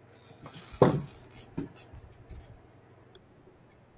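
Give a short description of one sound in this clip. Garden loppers snap shut with a sharp click.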